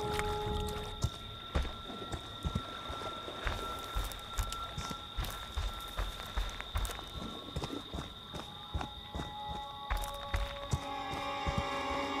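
Heavy footsteps tramp steadily through undergrowth.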